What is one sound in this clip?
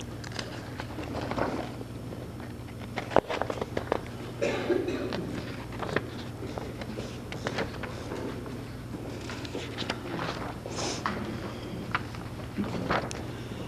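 A middle-aged woman speaks calmly through a microphone and loudspeaker in an echoing hall.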